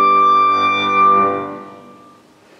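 A clarinet holds a final note that fades in an echoing hall.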